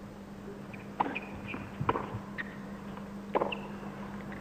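A tennis ball is struck with sharp pops of a racket.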